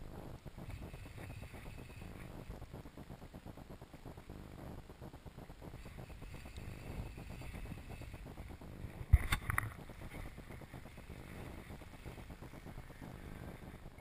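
A fishing reel clicks and whirs as the line is wound in.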